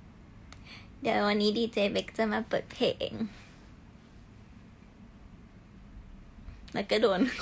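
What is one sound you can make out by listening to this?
A young woman talks cheerfully and closely into a phone microphone.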